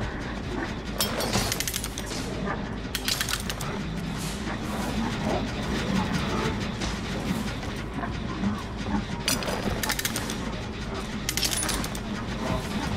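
A metal trap creaks and clanks as it is pried open.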